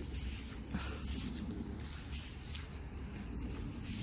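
Footsteps rustle through dry fallen leaves.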